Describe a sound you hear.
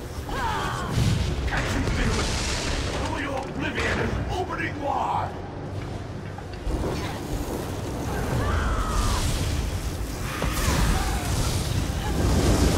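Fiery blasts whoosh and burst.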